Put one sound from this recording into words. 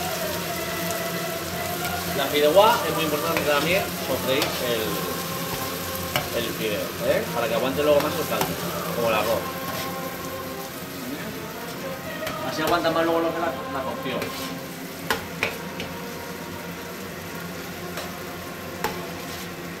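A thick sauce bubbles and sizzles in a pan.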